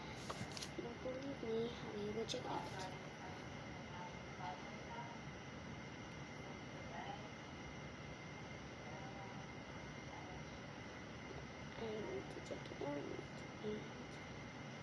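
A young girl speaks softly close by.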